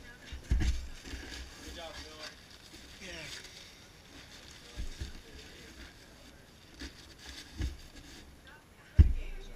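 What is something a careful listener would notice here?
A paper bag crinkles and rustles.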